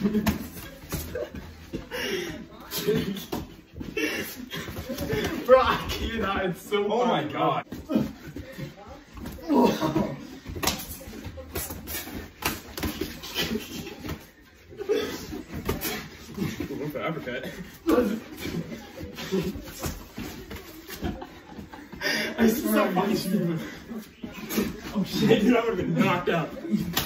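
Young men laugh and shout with excitement nearby.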